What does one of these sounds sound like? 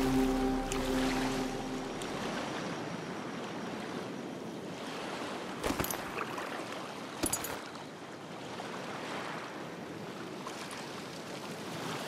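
Water laps and splashes softly throughout.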